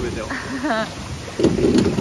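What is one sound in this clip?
Oars splash in water.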